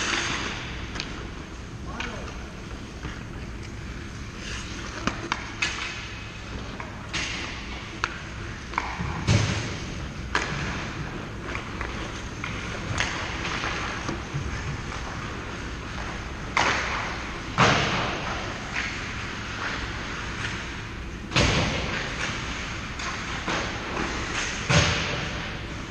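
Hockey sticks clack sharply against a puck and the ice.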